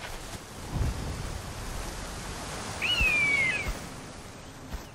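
Water rushes down a waterfall.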